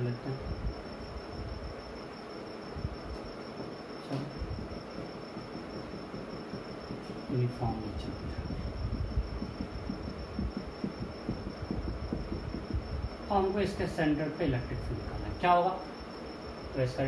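A man speaks calmly nearby, explaining.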